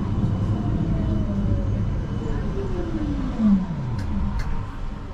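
A tram's motor whines and falls in pitch as it slows.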